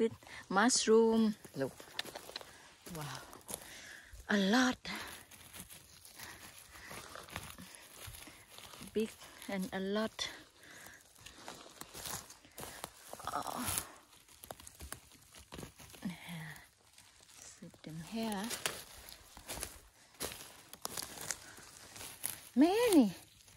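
A hand pulls a mushroom from the grass with a soft rustle.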